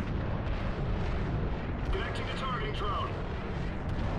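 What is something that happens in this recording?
Laser guns fire in rapid zapping bursts.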